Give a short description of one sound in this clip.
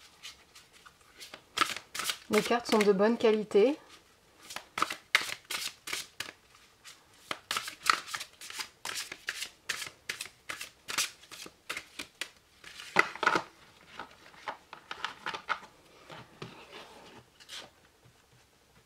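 Cards tap and slide against each other in quick, light clicks.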